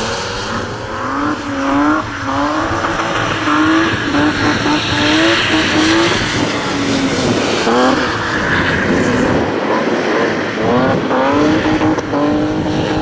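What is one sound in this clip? Tyres hiss and spray on a wet track.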